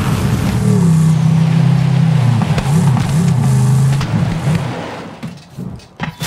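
A buggy engine roars loudly, then winds down.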